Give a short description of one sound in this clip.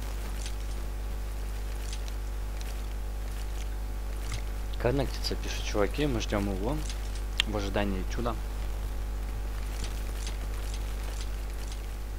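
A pistol clicks and rattles softly as it is handled.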